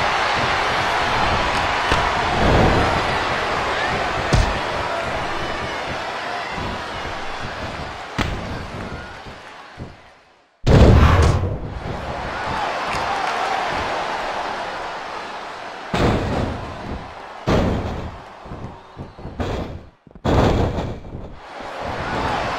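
A crowd roars steadily in a large arena.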